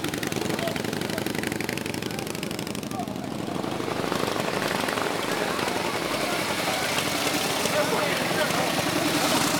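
A motorcycle engine idles and rumbles nearby.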